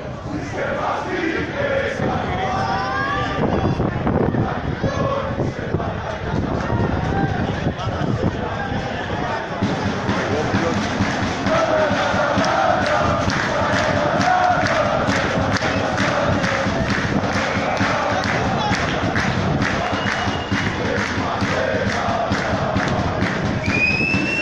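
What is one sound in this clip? A large crowd chants and sings loudly in an open stadium.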